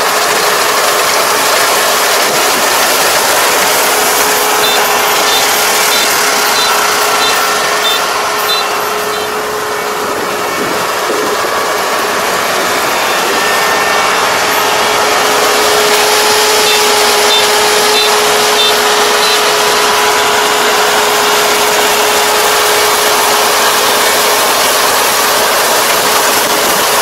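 A combine harvester engine drones steadily nearby.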